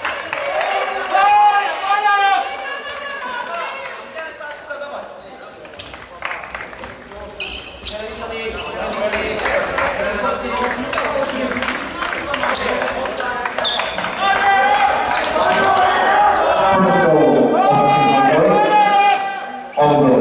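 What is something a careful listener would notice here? A crowd chants and sings loudly in an echoing hall.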